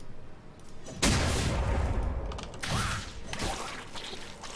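Video game spell effects whoosh and burst.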